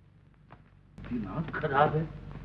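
An elderly man speaks, close by.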